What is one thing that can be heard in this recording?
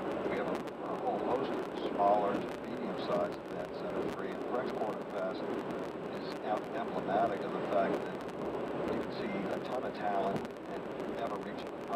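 Tyres hum steadily on a concrete road.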